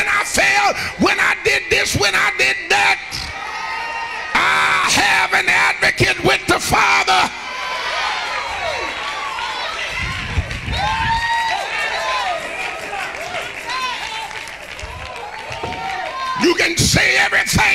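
A man preaches with passion into a microphone, heard through loudspeakers in a large hall.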